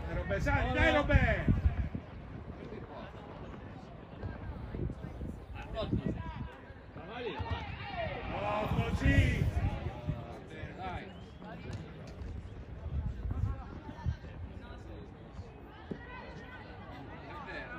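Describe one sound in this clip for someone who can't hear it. Young players shout and call out to each other outdoors on an open field.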